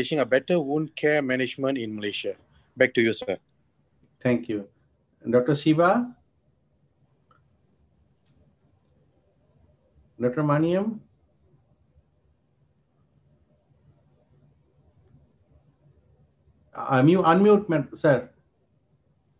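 A man speaks calmly over an online call, in short phrases with pauses.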